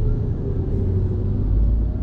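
A bus drives by.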